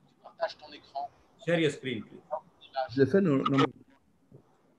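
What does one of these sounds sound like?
A middle-aged man speaks calmly over an online call.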